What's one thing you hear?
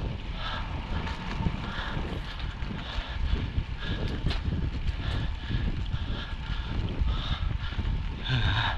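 Wind rushes steadily past a bicycle rider outdoors.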